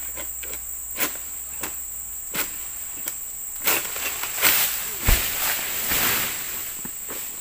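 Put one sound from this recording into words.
A long-pole harvesting sickle hacks at an oil palm fruit stalk.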